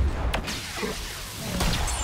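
Energy blades hum and clash with sharp buzzing strikes.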